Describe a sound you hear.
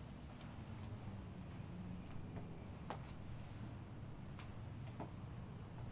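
Hands rub and press on cloth.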